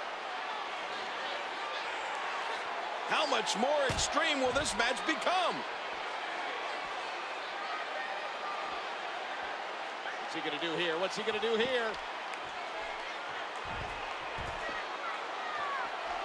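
A large crowd murmurs and cheers in an arena.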